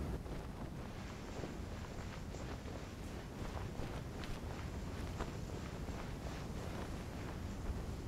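Soft footsteps crunch on sand.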